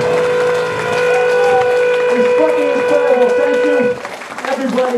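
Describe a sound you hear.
A band plays loudly in a club and then stops.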